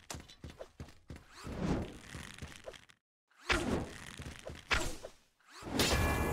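Energy swords whoosh and clash in quick swipes.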